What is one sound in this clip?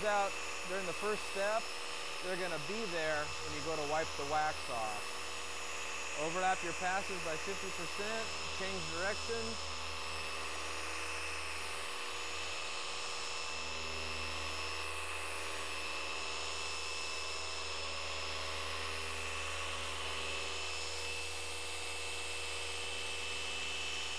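An electric polisher hums steadily.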